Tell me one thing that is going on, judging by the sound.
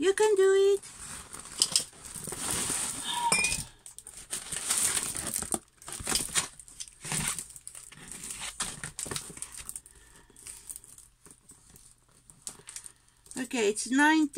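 Plastic wrap crinkles and rustles up close.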